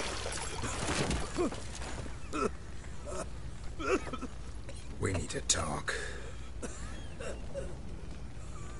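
A man speaks gruffly in a low voice.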